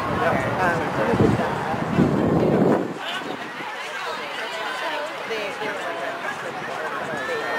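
Young women chatter and call out to each other outdoors at a distance.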